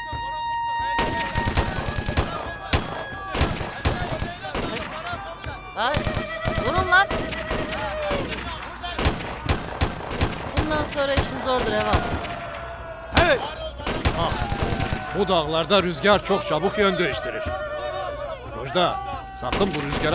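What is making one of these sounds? Gunshots fire rapidly in the open air.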